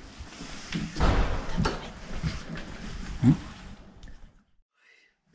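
Footsteps walk along a hard floor indoors.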